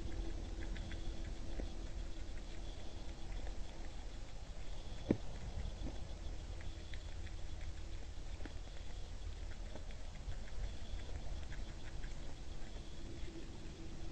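A deer crunches corn while eating from the ground.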